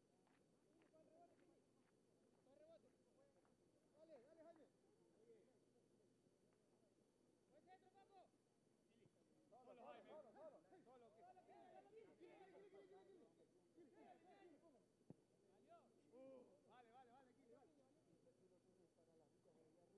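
Men shout across the field in the distance, outdoors.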